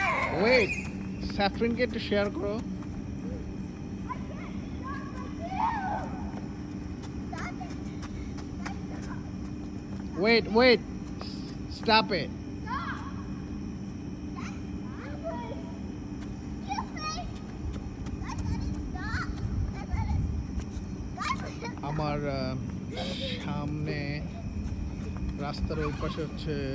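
Children shout and squeal playfully nearby, outdoors.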